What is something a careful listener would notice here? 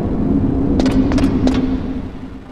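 Footsteps clang on a metal ladder.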